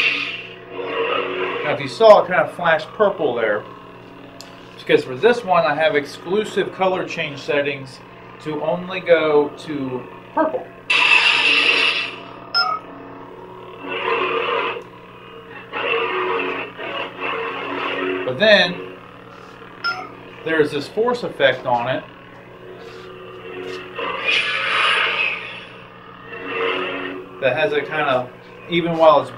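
A toy light sword hums steadily.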